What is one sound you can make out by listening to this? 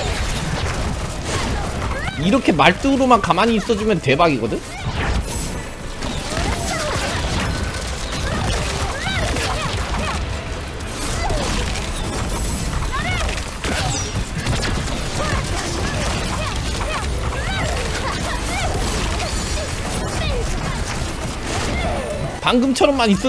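Game spell effects whoosh and crackle steadily.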